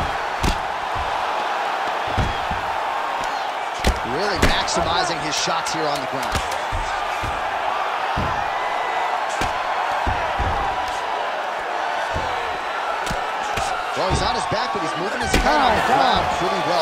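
Punches land with heavy, dull thuds again and again.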